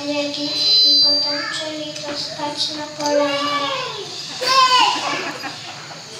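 Young children recite in high voices in an echoing hall.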